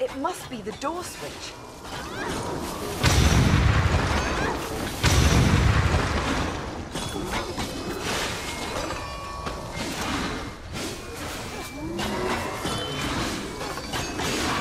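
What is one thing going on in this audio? Swords clash and strike repeatedly.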